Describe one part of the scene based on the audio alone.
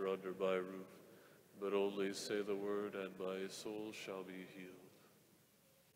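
A man sings or chants through a microphone in a large echoing hall.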